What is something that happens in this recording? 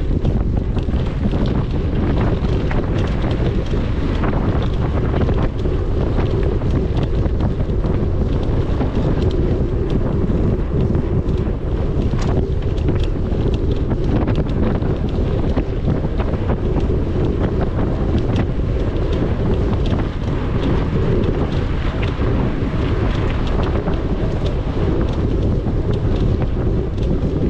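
Bicycle tyres crunch and rattle over a dirt trail.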